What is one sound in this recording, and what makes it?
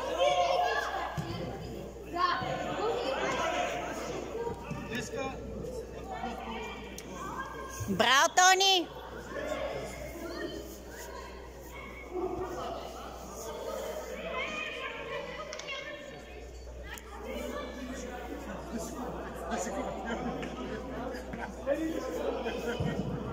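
Children shout and call out across a large echoing indoor hall.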